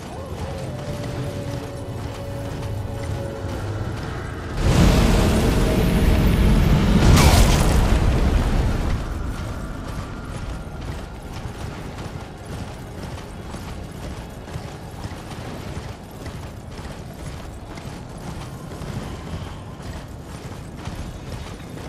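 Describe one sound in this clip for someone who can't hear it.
A strong wind howls in a blizzard.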